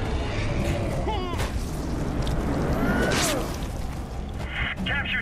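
A monstrous creature shrieks and snarls.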